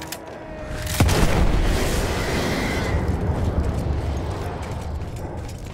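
A large explosion booms close by and rumbles away.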